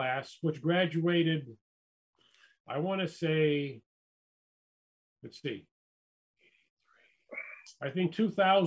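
A man speaks calmly in pauses over an online call.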